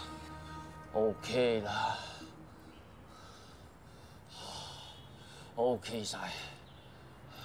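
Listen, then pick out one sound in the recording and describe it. A middle-aged man speaks in a low, urgent voice nearby.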